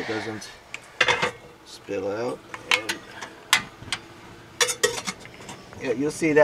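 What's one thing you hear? A metal kettle clanks as it is set on a stove.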